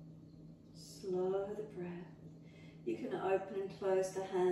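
A woman speaks calmly and softly.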